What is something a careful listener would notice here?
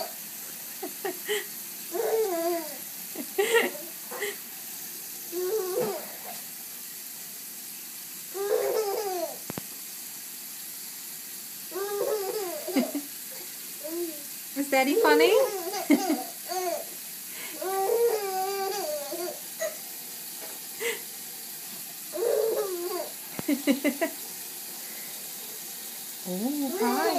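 Tap water runs steadily into a small bath.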